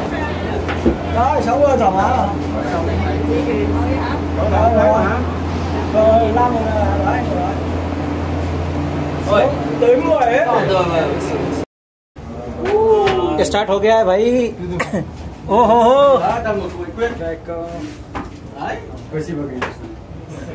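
Men and women chatter nearby.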